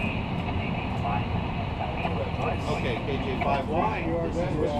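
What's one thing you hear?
An older man speaks calmly into a headset microphone, close by.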